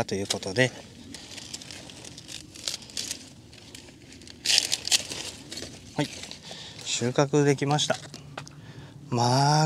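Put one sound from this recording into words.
Leaves rustle and crackle.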